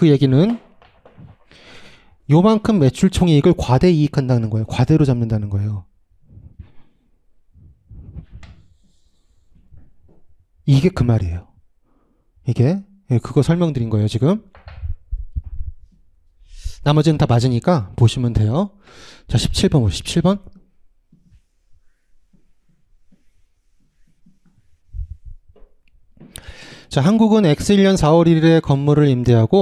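A young man lectures with animation through a microphone, close by.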